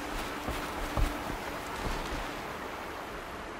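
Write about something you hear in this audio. A spear strikes a body with a heavy thud.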